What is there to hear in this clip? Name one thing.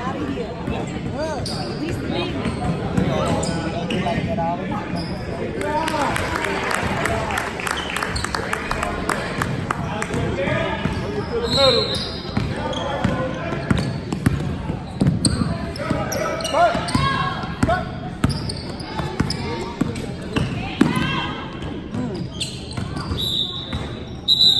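A crowd of spectators talks and cheers throughout a large echoing gym.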